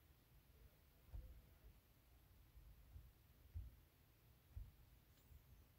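A finger taps lightly on a touchscreen.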